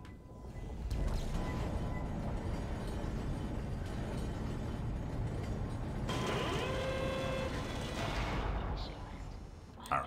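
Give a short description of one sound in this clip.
A large machine rumbles and hums steadily, then stops.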